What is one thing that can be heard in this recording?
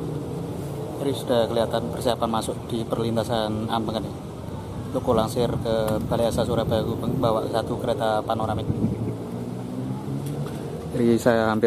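A man speaks calmly close to the microphone, outdoors.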